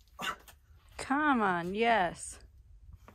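A young man nearby lets out a long, wavering shout of effort.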